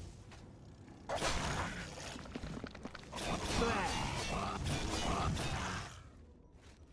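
A creature roars loudly.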